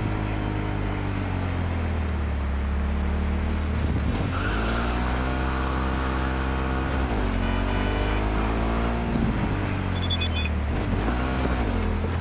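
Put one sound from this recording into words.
A motorcycle engine revs up and down as gears shift.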